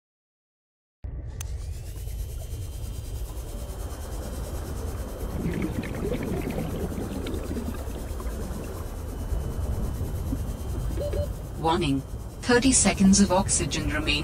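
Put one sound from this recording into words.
A small submersible hums as it moves underwater.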